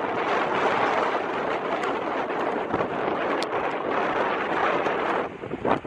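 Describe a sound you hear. Waves crash and splash against a rocky shore.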